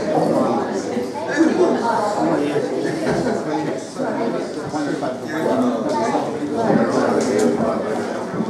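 A small band plays lively music through loudspeakers.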